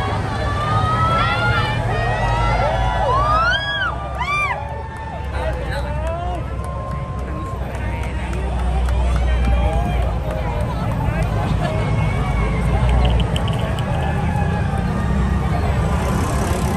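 A crowd chatters and calls out while walking along a street.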